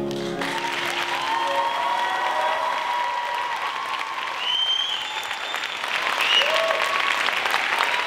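A young woman sings through a microphone in a large hall.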